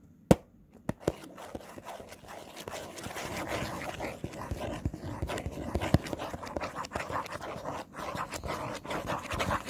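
Fingers scratch and rub on a cardboard toy box.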